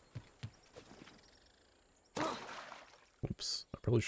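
Water splashes as a body lands in it.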